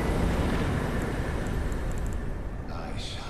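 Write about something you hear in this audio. Soft menu ticks click several times.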